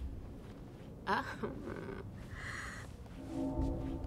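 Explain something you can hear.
A woman speaks playfully nearby.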